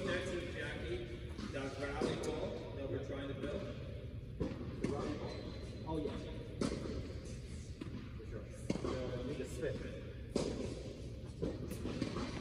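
A tennis racket strikes a ball again and again in a large echoing indoor hall.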